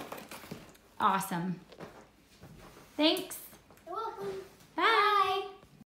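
A young boy talks excitedly, close by.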